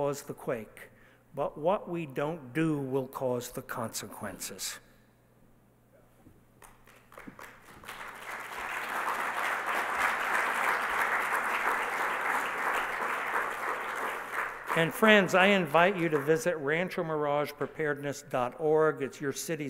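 An elderly man speaks calmly through a microphone in a large hall.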